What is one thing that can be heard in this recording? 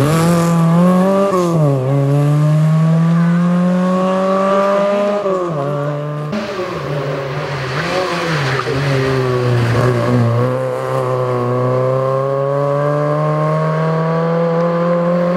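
A small car's engine revs hard and changes gear as it speeds past.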